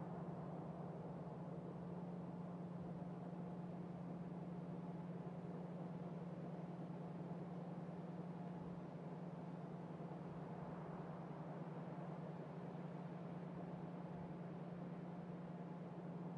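Factory machines hum and whir steadily.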